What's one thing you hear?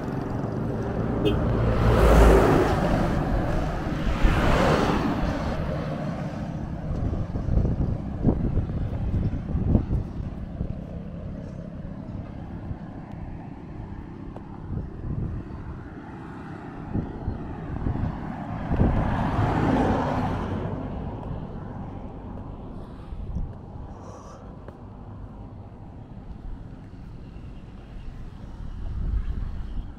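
Wind buffets and rumbles outdoors.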